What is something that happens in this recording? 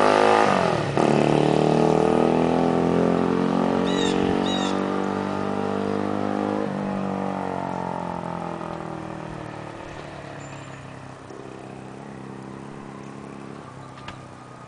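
A motorcycle engine fades into the distance down the street.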